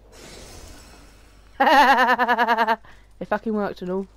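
Flames burst up with a roaring whoosh.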